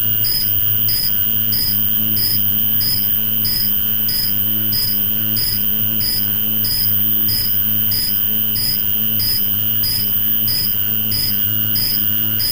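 Machine parts click sharply in a fast, even rhythm.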